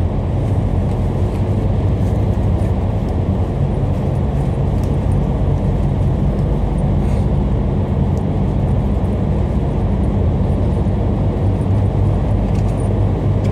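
A vehicle engine rumbles steadily up close.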